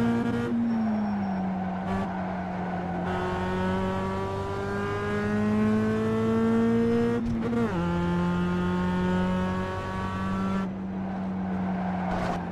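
A racing car engine roars, climbing in pitch and dropping at each gear change.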